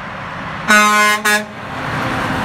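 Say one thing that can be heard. A truck's air horn blares twice.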